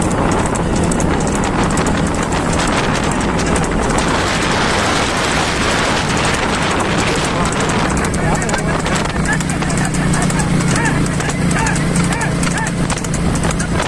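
A motorcycle engine hums steadily nearby.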